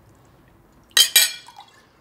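Wine pours into a glass.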